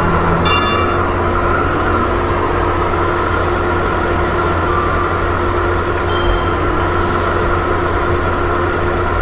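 Music plays.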